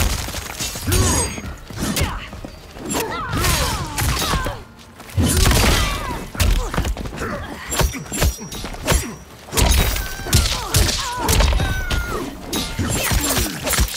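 Heavy punches and kicks land with loud thuds and smacks.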